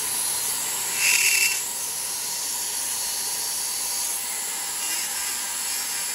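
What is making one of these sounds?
A small rotary tool whines as it grinds a small piece of material.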